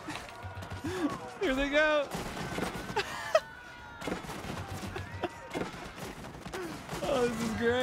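Cannons boom and explosions crack in a game battle.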